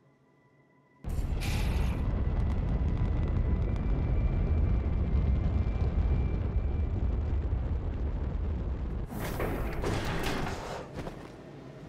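A rocket engine roars with a deep, steady rumble.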